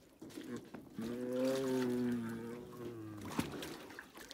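A tiger moans loudly close by.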